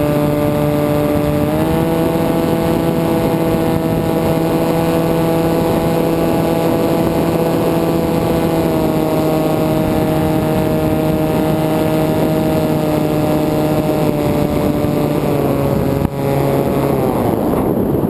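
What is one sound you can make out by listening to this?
A small aircraft motor hums steadily, then cuts out.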